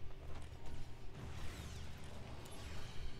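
Flames burst with a roaring whoosh.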